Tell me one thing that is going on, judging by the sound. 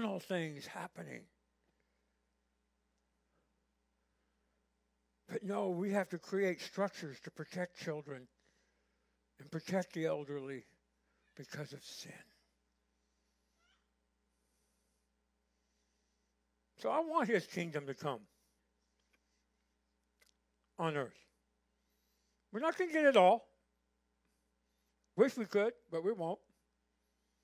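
A middle-aged man speaks calmly through a microphone, pausing often.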